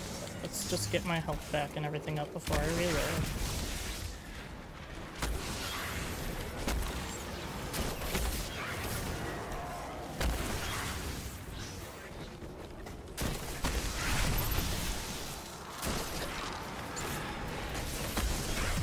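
Video game gunfire and blasts crack and boom.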